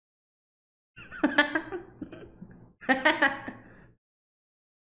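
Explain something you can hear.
A young man laughs heartily close to a microphone.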